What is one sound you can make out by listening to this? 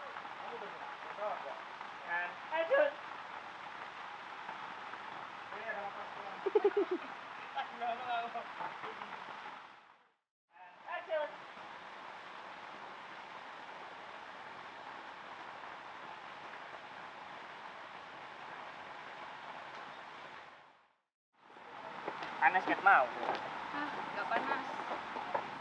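Young men talk casually nearby outdoors.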